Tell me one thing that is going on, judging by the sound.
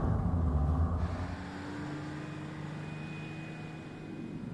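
A van engine hums steadily as it drives along a street.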